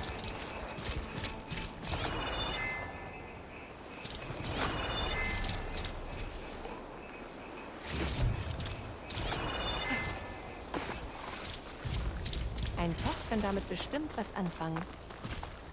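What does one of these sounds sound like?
Footsteps crunch through undergrowth.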